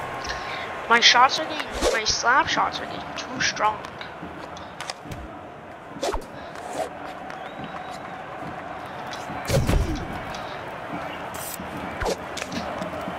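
Hockey sticks smack a puck with sharp cracks.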